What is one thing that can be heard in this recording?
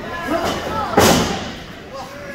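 A loud slap or thud rings out once.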